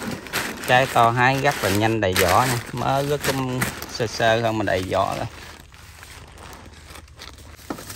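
Paper bags rustle as they are handled.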